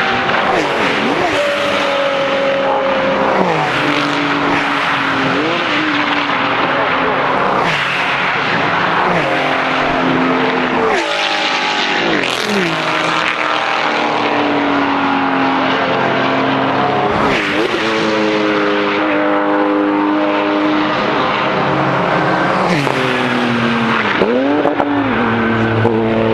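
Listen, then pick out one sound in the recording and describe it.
Porsche race car engines rise in pitch and drop as the drivers shift up.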